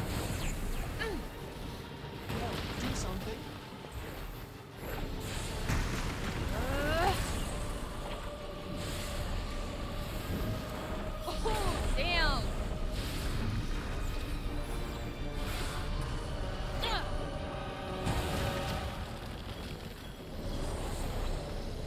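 Heavy blows and magic blasts thud and crash.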